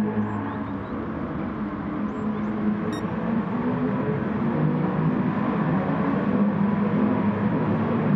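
Several racing cars roar together in a pack.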